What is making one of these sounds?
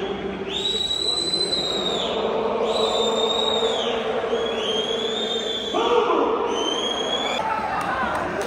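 A large stadium crowd sings loudly in unison, echoing under the roof.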